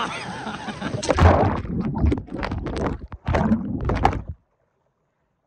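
Water splashes and rushes loudly as a man plunges in.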